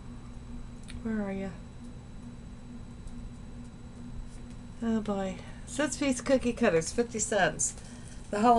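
A woman speaks close by, in short bursts.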